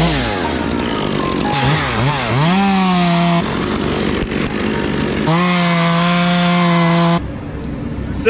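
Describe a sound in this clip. A chainsaw engine revs and idles up close.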